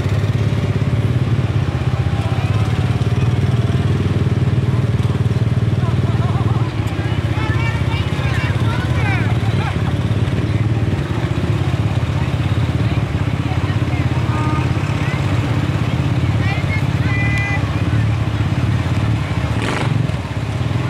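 A vehicle engine rumbles steadily outdoors.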